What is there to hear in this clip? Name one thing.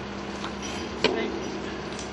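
Metal clinks as a bolt is handled.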